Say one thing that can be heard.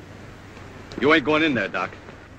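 A man speaks up loudly and nearby.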